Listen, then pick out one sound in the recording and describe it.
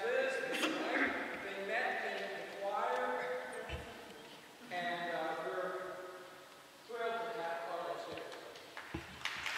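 A woman sings in a large echoing hall.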